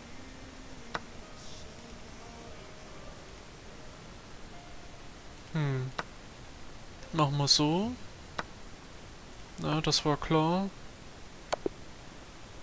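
Short digital clicks sound as chess pieces move in a computer game.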